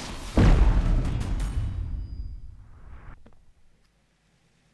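A heavy thud booms and slowly rumbles away.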